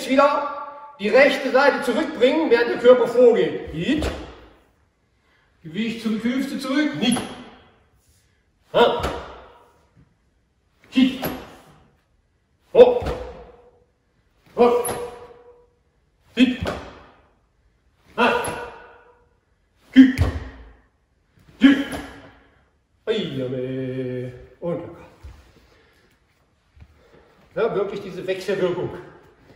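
An older man speaks calmly in an echoing hall.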